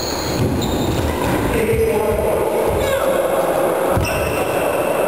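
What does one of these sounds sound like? Badminton rackets hit a shuttlecock in an echoing hall.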